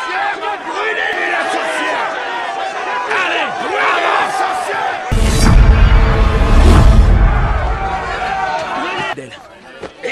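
A crowd shouts and jeers loudly outdoors.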